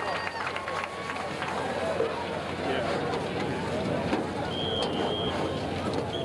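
A large crowd chatters and cheers in an open stadium.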